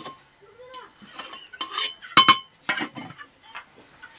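A metal ladle scrapes and clanks against a metal pot.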